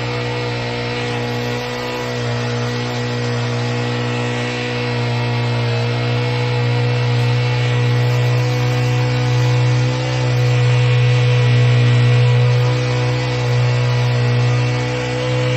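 A small petrol engine hums steadily and loudly up close.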